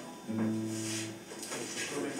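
An acoustic guitar rings out with a held chord.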